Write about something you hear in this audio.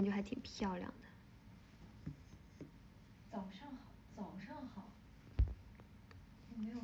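A young woman speaks softly and playfully, close to a phone's microphone.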